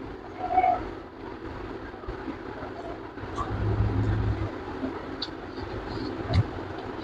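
A young man chews food noisily with his mouth open.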